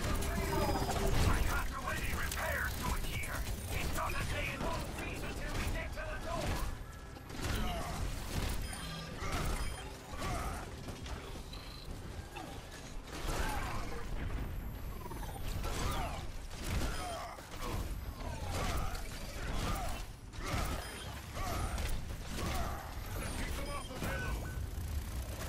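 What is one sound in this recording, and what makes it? Heavy gunfire blasts in rapid bursts.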